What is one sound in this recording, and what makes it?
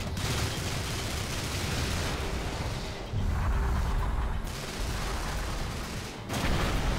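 Explosions boom and rumble loudly.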